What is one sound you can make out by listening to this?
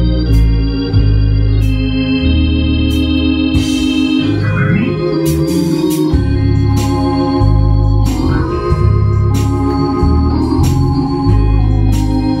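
An electronic keyboard plays sustained chords.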